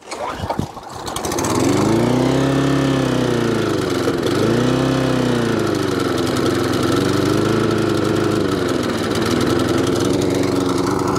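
A lawnmower engine starts and runs with a steady loud drone.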